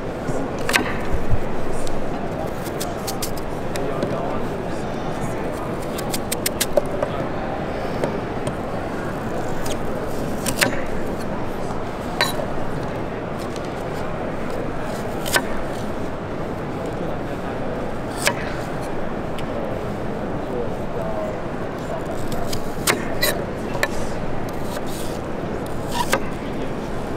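A knife taps on a wooden board.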